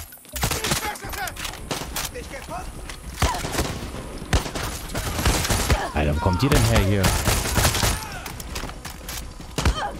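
A rifle magazine clicks as it is reloaded.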